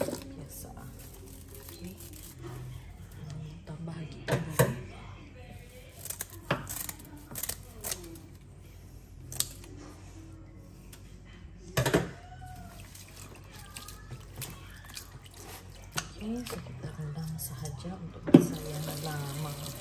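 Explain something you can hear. Water splashes and sloshes as hands stir noodles in a basin.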